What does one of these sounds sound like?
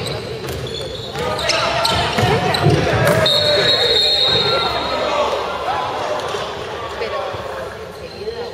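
A crowd of spectators cheers and shouts from the stands.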